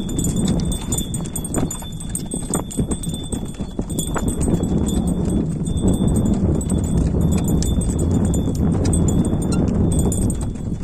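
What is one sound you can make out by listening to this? A wooden cart rattles and bumps over a dirt track.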